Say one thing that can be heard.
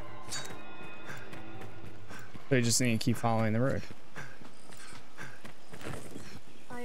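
Footsteps patter quickly on a dirt path.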